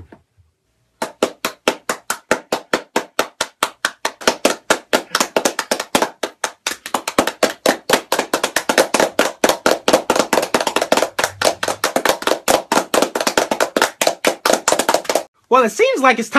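A young man claps his hands in a fast rhythm.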